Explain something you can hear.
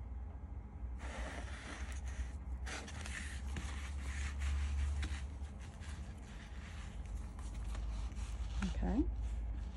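Paper pages rustle and flap as an album is handled.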